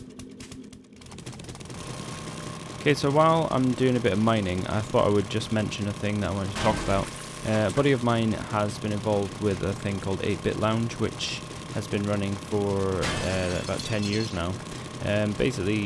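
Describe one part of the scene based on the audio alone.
A motorised drill whirs and grinds into rock.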